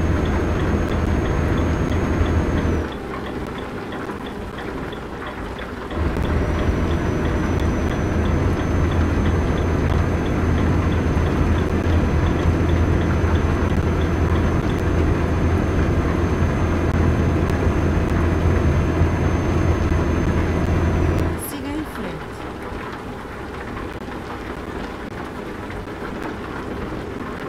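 Rain patters on a truck's windscreen.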